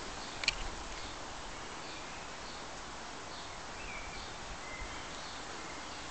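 Leaves rustle softly in a light breeze outdoors.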